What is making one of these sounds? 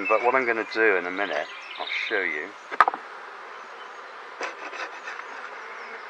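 A hive tool scrapes and knocks against a wooden frame.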